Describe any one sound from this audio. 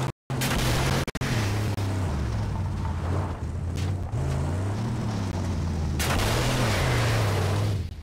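A car engine roars and revs at high speed.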